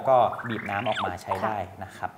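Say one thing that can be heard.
Water pours into a blender jug, rising in pitch as it fills.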